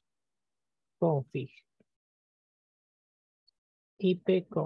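A young man speaks calmly into a close microphone.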